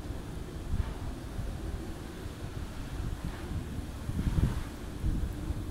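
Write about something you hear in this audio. An electric motor hums as a car's rear cover slowly lifts open.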